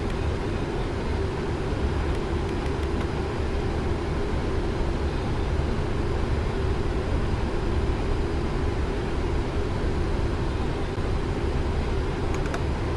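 Jet engines drone steadily with a low rumble.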